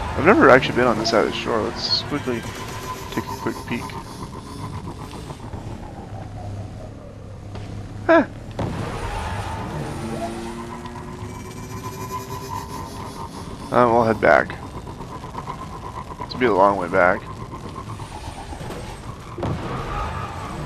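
A hover bike's engine hums steadily as it speeds along.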